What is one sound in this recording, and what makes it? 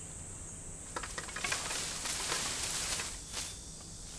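Leafy branches rustle as a man pushes them aside.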